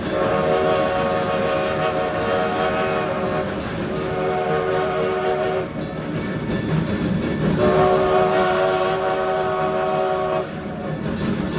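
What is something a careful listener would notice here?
A steam locomotive's whistle blows in long, loud blasts.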